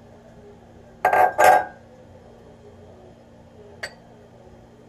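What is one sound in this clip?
Glass bowls clink and knock against a hard surface.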